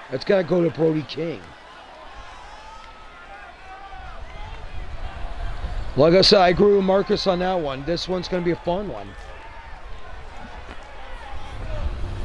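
A crowd cheers and roars in a large hall.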